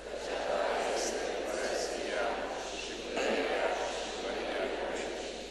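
A man speaks calmly into a microphone, echoing through a large hall.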